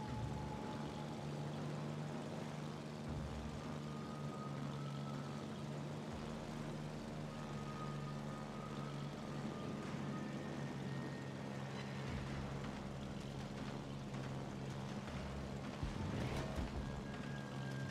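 Propeller plane engines drone steadily in a low hum.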